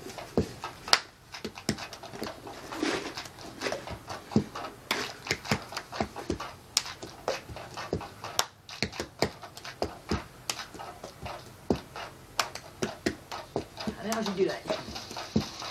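A young girl claps her hands in a quick rhythm.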